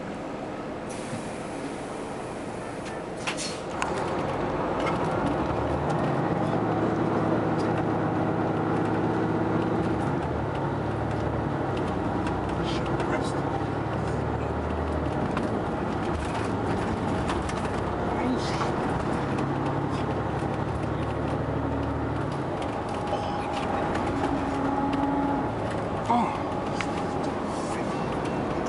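A bus engine hums and rumbles steadily as the bus drives along.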